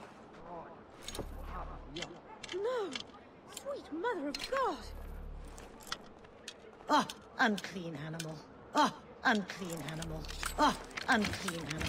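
Metal lock picks scrape and click inside a lock.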